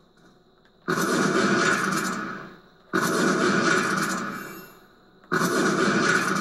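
Gunfire from a video game booms through a television speaker in bursts.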